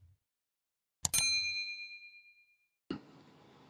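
A bell chimes once and rings out.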